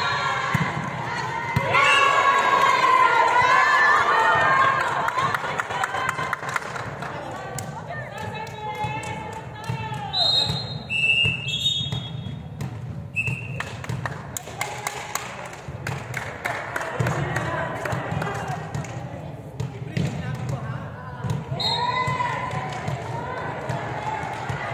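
Young girls chatter and call out in a large echoing hall.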